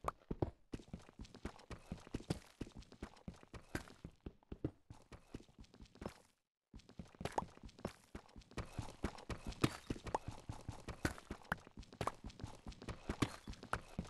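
A pickaxe chips at stone in quick, repeated knocks.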